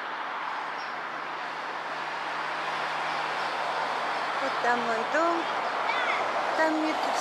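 Traffic hums steadily on a nearby road outdoors.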